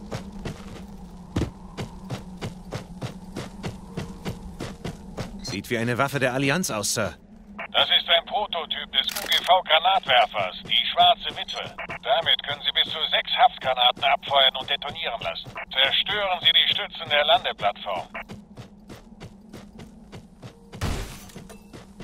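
Footsteps thud quickly on the ground as a soldier runs.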